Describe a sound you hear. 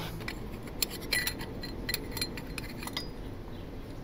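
Plastic parts click and rattle as they are pulled loose.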